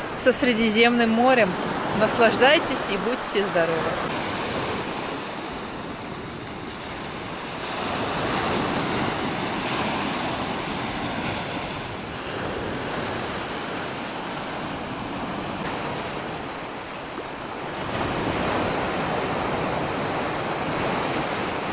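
Waves wash onto a stony shore.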